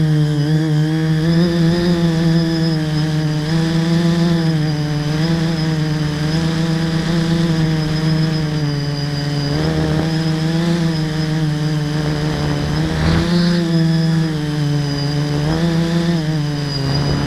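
A vehicle's motor hums steadily, its pitch rising and falling slightly.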